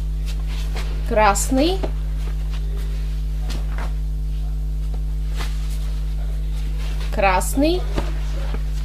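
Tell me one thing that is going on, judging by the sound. Fabric rustles and brushes close against the microphone.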